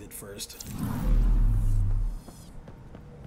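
A deep whooshing rumble swells and fades.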